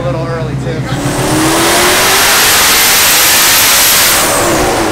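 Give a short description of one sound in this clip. A car engine roars loudly at full throttle.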